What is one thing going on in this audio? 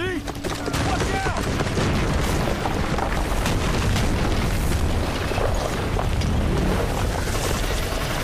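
Flames crackle and roar nearby.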